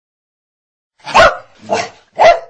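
A dog barks sharply a few times.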